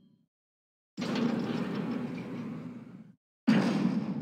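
Heavy metal elevator doors slide open with a rumble.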